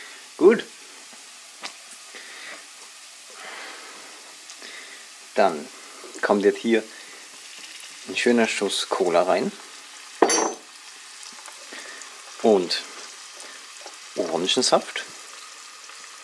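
Onions sizzle quietly in a hot pan.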